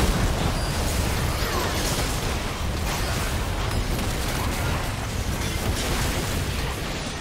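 Magic spells crackle and whoosh in a fast, noisy battle.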